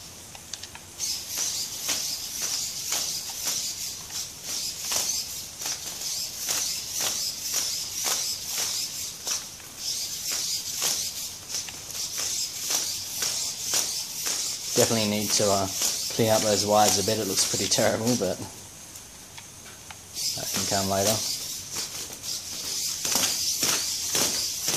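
Plastic robot feet tap rapidly on a hard floor.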